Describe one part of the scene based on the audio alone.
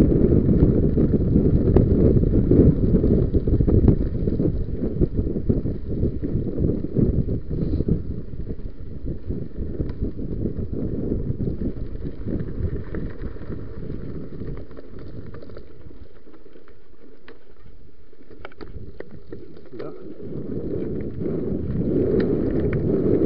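Bike tyres rattle and crunch over a bumpy dirt trail.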